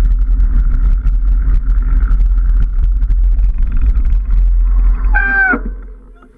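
A motorbike engine rumbles steadily, then fades.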